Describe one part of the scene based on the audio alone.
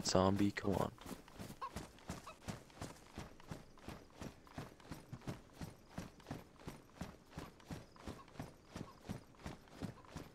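Footsteps run quickly over a gravel road.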